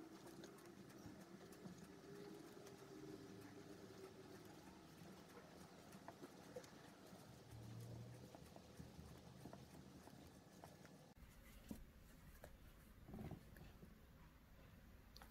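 A crochet hook softly clicks and yarn rustles as it is pulled through stitches.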